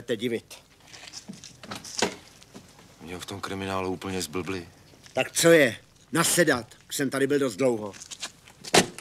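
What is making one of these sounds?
A man speaks tensely and close by.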